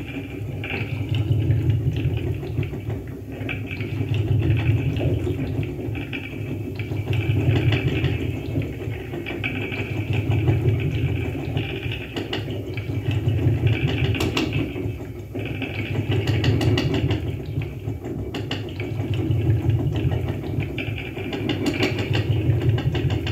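Crackling electronic noise sputters from a loudspeaker.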